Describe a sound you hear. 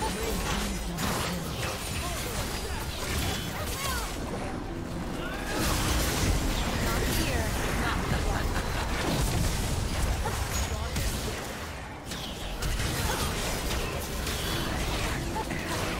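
Spell effects blast and crackle in a fast fantasy battle.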